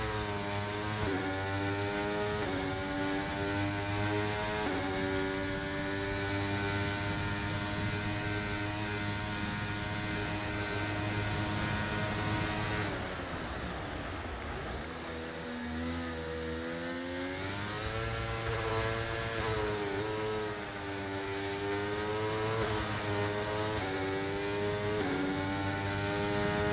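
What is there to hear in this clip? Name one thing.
A racing car engine screams at high revs, rising and falling as it shifts gears.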